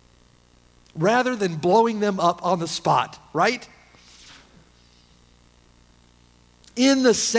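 A middle-aged man speaks slowly and deliberately through a microphone in a reverberant hall.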